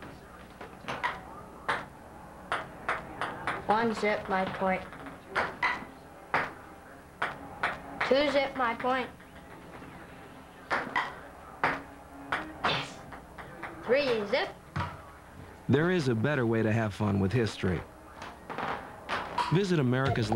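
A ping-pong ball clicks sharply against paddles and the table.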